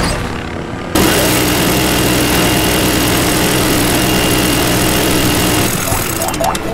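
A helicopter's rotor thumps and its engine whines in flight.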